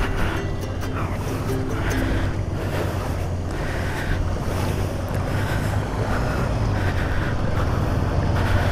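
Floodwater splashes and swishes around the wheels.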